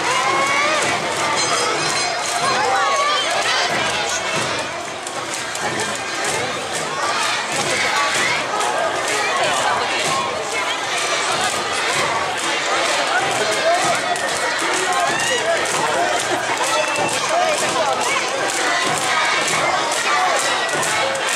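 A large crowd of dancers chants and calls out loudly outdoors.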